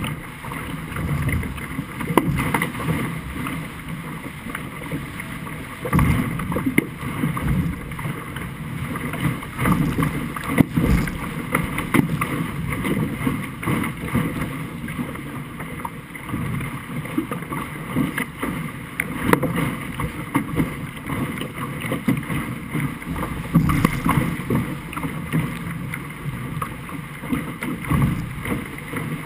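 Water splashes and hisses against a fast-moving hull.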